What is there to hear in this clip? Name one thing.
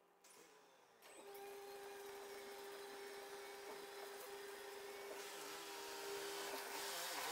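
A motorised garage door hums steadily as it rolls open.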